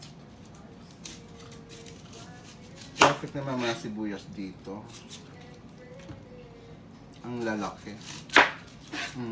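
A knife chops through an onion on a plastic cutting board.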